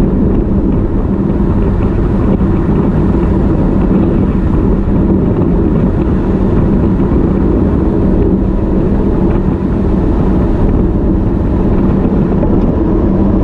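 Bicycle tyres hum steadily on smooth asphalt.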